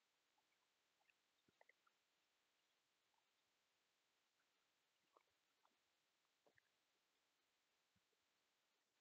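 Hands softly rustle and tap while handling a small knitted doll, close up.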